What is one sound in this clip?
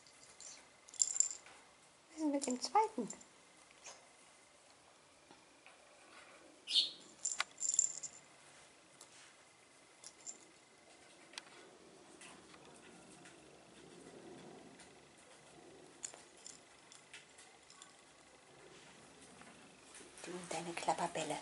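A small ball with a bell inside jingles as a bird pecks and rolls it.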